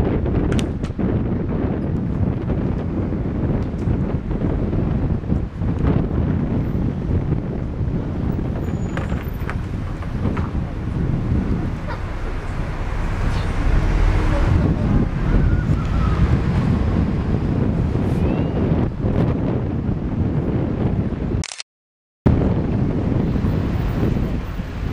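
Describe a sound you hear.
City traffic hums steadily along a busy road.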